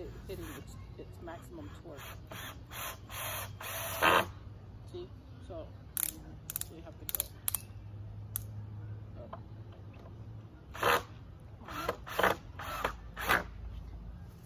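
A power drill whirs in short bursts, driving screws into wood.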